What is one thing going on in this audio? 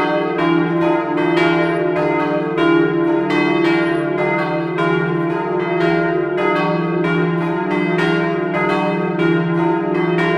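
Large church bells ring loudly and rapidly, close by, with strokes overlapping and ringing on.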